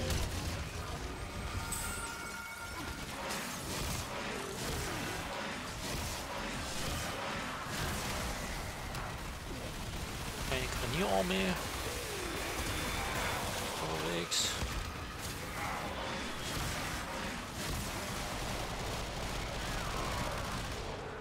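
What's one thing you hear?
Weapons slash and clash in a noisy fight.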